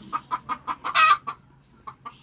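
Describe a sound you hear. A chicken gives a short loud squawk.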